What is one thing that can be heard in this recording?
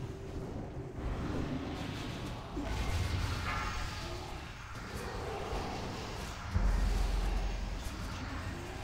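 Heavy booming impacts thud in a game battle.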